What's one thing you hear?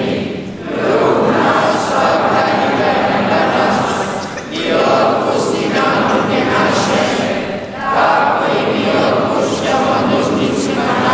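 A congregation of men and women sings together in a large echoing hall.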